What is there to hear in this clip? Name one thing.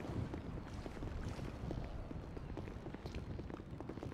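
Footsteps thud on a wooden deck.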